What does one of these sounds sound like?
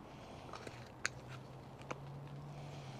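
Small plastic and metal parts click and tap together as they are handled.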